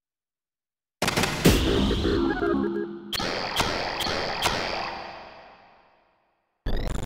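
A magic spell bursts with shimmering chimes and a deep rumble.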